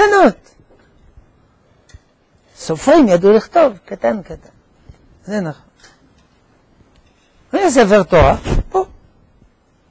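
An elderly man speaks through a microphone in short bursts with pauses.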